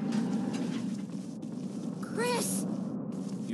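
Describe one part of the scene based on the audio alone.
Footsteps walk slowly on the ground.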